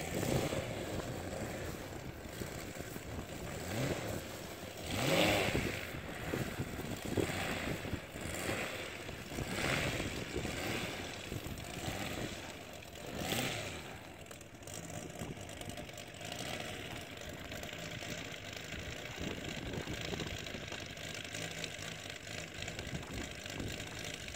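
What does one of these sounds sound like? A small model airplane engine hums steadily nearby.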